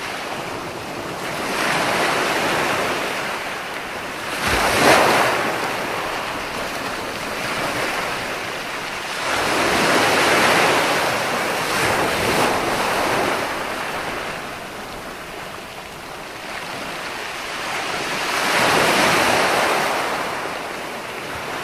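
Waves break and wash up onto a shore in surging rushes.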